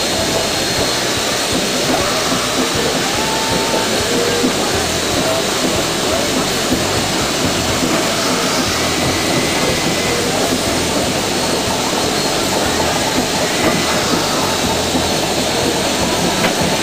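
A steam locomotive chugs and rumbles along the track.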